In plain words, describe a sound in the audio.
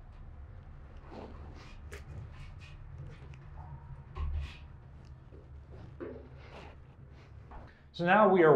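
Metal clanks as a man works a lever.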